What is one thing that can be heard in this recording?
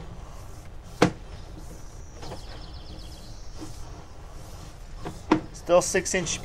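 A probe knocks against the inside of a pipe as it is pushed along.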